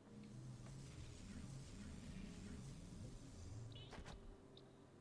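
A teleport beam hums and whooshes with a bright, rushing hiss.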